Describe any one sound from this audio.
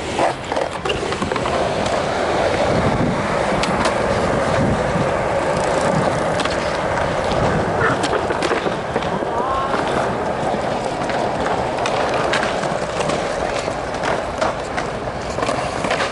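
Skateboard wheels clack sharply over cracks and edges.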